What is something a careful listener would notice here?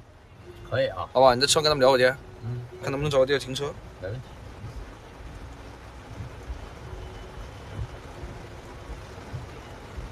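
Heavy rain patters steadily on a car windshield.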